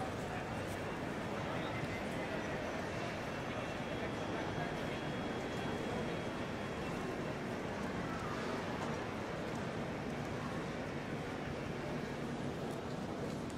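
A distant crowd murmurs in a large, echoing hall.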